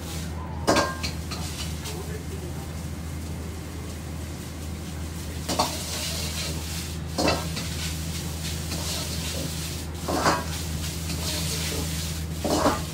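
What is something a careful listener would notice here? A metal ladle clanks and scrapes against a wok.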